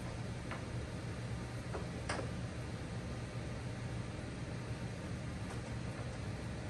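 A wheel knocks and clicks lightly, close by.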